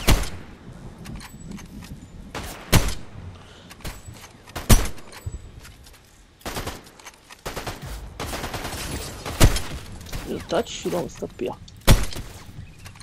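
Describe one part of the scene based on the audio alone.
Sniper rifle shots crack loudly in a game.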